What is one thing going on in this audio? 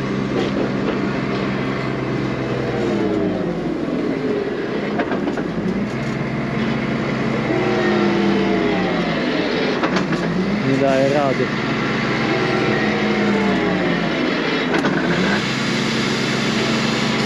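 A tractor engine drones close by, its pitch rising and falling.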